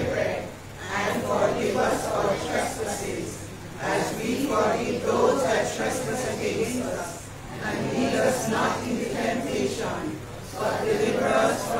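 A congregation sings together in an echoing hall.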